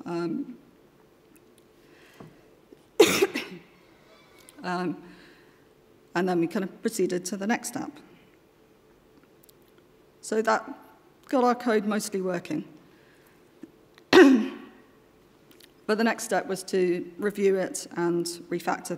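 A woman speaks calmly into a microphone, with pauses.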